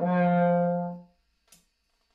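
A French horn plays a held note close by and stops.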